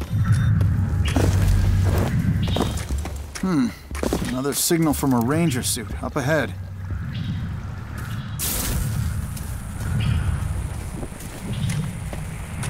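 Footsteps tread through grass and dirt.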